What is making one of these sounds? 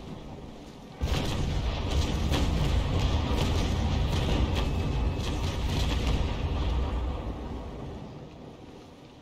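A rapid volley of cannon shots rumbles for several seconds.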